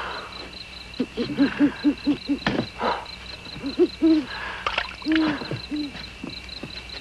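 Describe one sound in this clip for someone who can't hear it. A young woman speaks in a frightened, breathless voice close by.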